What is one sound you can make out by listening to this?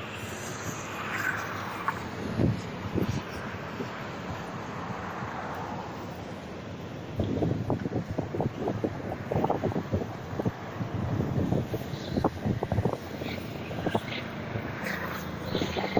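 Wind blows steadily outdoors.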